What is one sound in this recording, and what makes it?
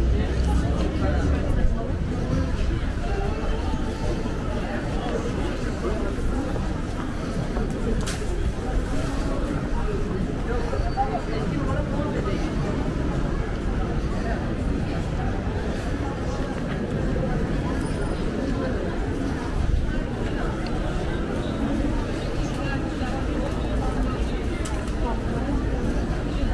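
A busy crowd of people murmurs and chatters all around outdoors.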